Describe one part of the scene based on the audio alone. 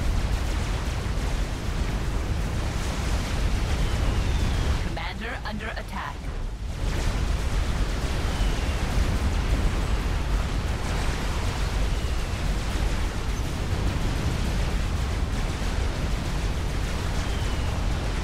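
Laser weapons zap and crackle.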